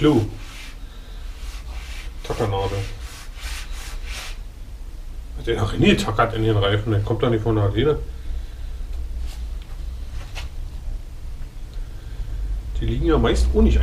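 A rubber bicycle tyre rubs and squeaks as hands work it.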